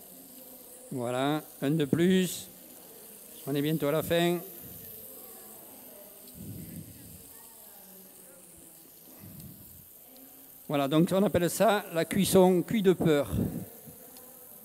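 A man speaks with animation through a headset microphone.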